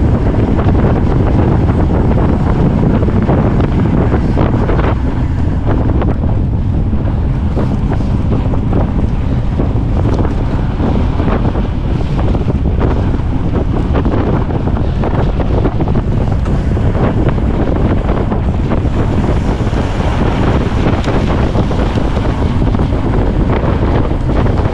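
Wind rushes loudly past at speed.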